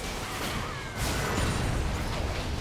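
A fiery explosion roars loudly.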